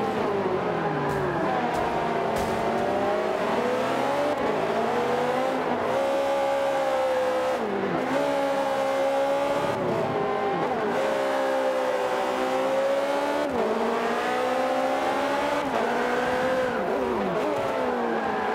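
A racing car engine roars, rising and falling in pitch as it revs through the gears.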